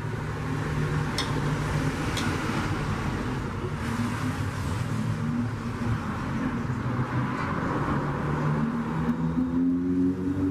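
Pliers click and scrape against metal.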